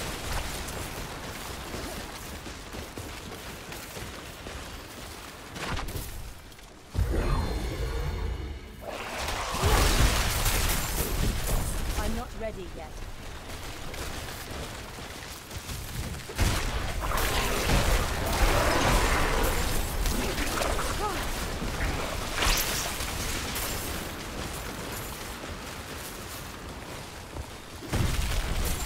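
Icy blasts crackle and shatter over and over.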